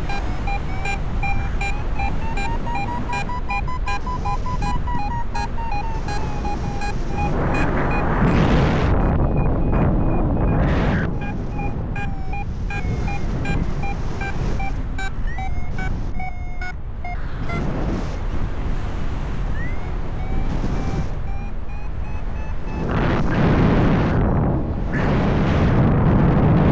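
Wind rushes and buffets loudly past, rising in strong gusts.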